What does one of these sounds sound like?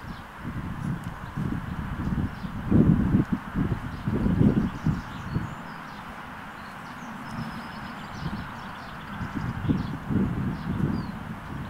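A horse tears and munches grass close by.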